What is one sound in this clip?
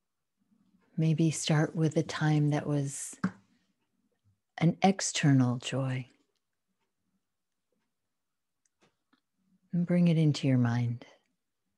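A woman speaks with animation through an online call, in short bursts with pauses.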